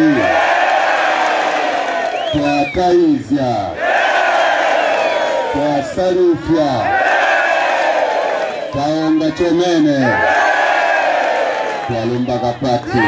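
A large crowd chants back in unison.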